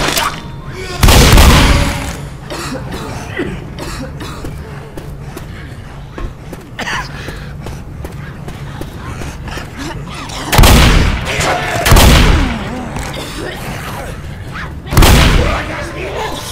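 A shotgun fires loud booming blasts, a few times.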